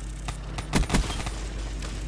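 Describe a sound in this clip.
A gun fires a burst of sharp shots.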